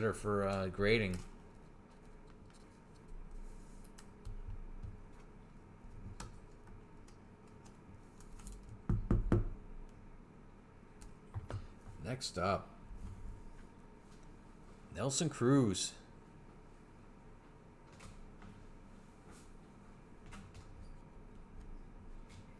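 Trading cards rustle and slide softly as they are handled.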